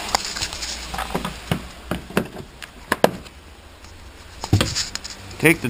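Plastic trim panels knock and rattle as hands handle them close by.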